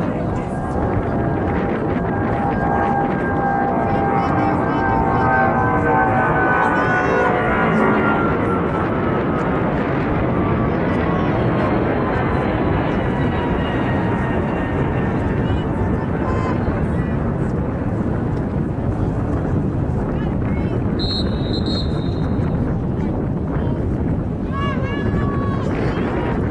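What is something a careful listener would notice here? Wind rumbles loudly across the microphone outdoors.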